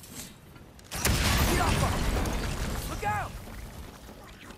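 An explosion bursts with a deep roar.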